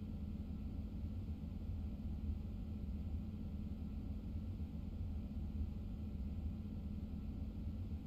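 A train cab hums with a low steady rumble as the train rolls slowly along the tracks.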